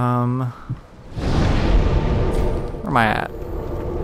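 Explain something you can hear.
A deep rushing whoosh swells and fades.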